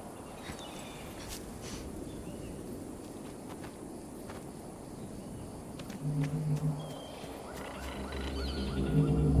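Light footsteps patter on rocky ground.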